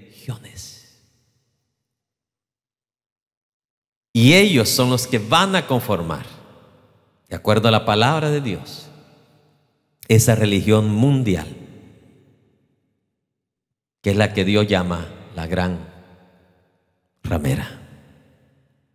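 A middle-aged man speaks with animation through a microphone, in a large echoing hall.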